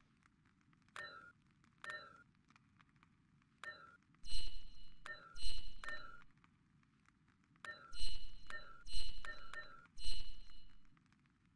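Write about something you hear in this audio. Short soft clicks sound as game menu options change.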